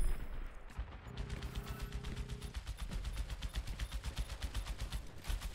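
A game weapon fires rapidly in quick bursts.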